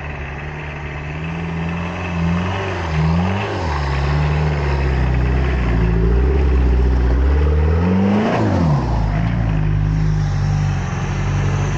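An off-road vehicle's engine revs hard as it climbs through snow.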